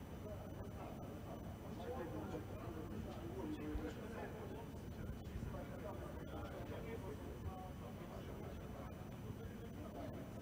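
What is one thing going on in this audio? Two men talk calmly at a distance in a large echoing hall.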